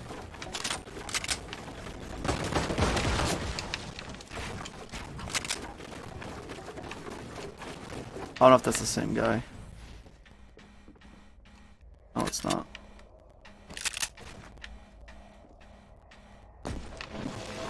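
Wooden walls clatter as they are built in a video game.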